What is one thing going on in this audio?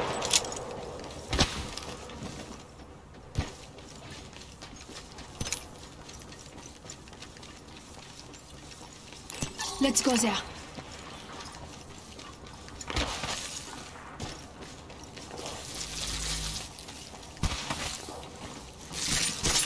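Footsteps patter quickly over the ground.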